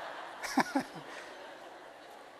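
A large audience laughs together in a big hall.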